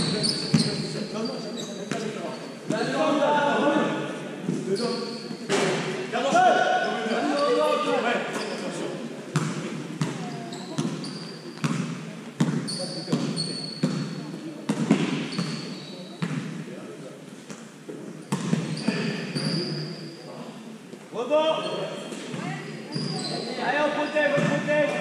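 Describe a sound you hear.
Sneakers squeak sharply on a hard court floor, echoing in a large hall.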